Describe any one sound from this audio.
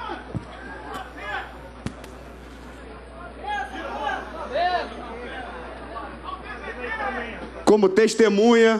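Men and women chatter quietly nearby.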